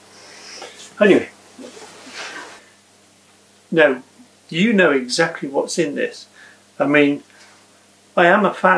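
A middle-aged man speaks close by, calmly.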